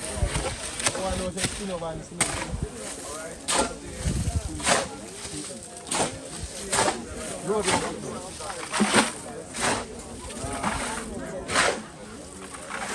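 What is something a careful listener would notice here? A shovel scrapes and scoops wet sand.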